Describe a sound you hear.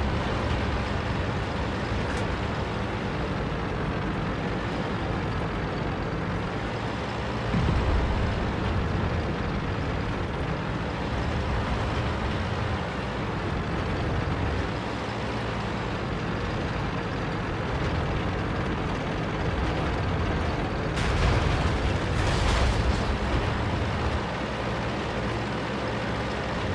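Tank tracks clatter and squeak over the ground.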